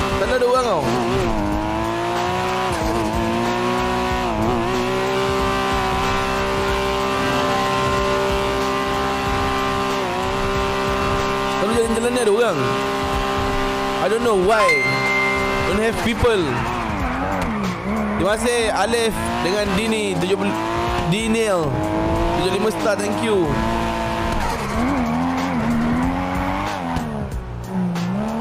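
A car engine revs hard, rising and dropping in pitch as gears shift.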